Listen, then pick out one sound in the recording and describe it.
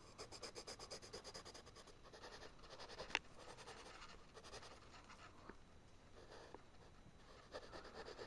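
A pencil scratches and scrapes rapidly on paper.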